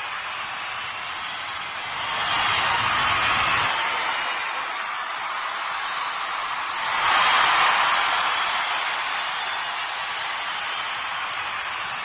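A large crowd cheers, swelling in loud waves.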